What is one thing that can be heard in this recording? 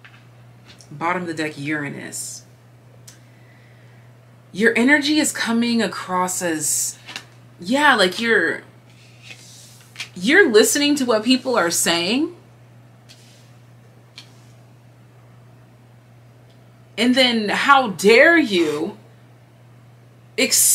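A young woman speaks calmly close by, in short bursts with pauses.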